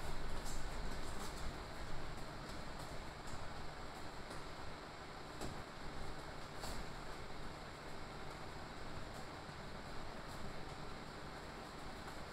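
Feet shuffle and tap lightly on a padded floor.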